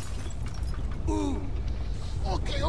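A second man answers in a low voice, close by.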